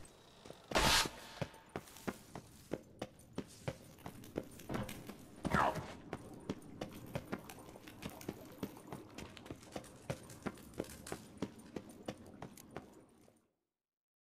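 Footsteps thud quickly on a stone floor, echoing in a stone corridor.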